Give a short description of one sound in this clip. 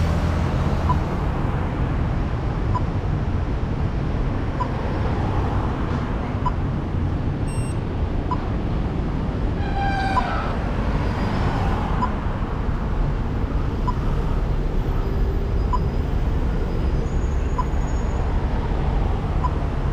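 Cars drive past close by.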